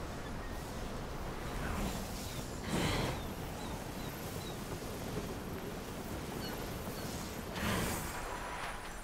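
Magic energy blasts whoosh and crackle.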